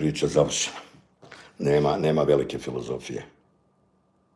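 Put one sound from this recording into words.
A middle-aged man speaks close up with animation.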